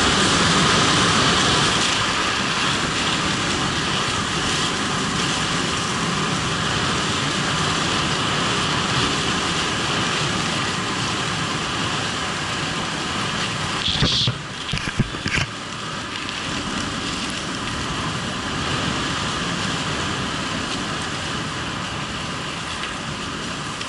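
Skis scrape and hiss steadily over packed snow.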